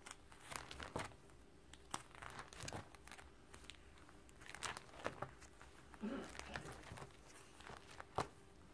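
Plastic album sleeves crinkle and rustle as pages are turned.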